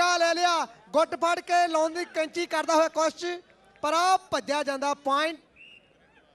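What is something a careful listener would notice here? A man chants loudly in a rapid, repeated rhythm.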